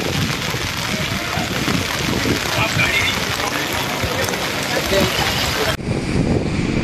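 Floodwater rushes and churns steadily.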